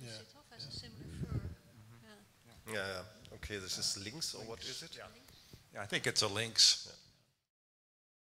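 A man speaks into a handheld microphone.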